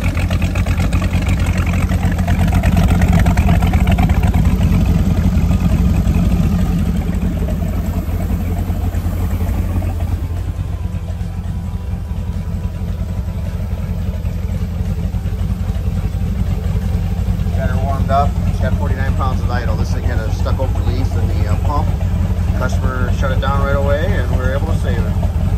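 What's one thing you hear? An engine idles with a steady low rumble.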